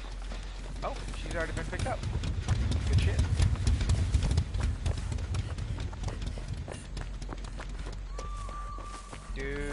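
Footsteps run quickly through grass and brush.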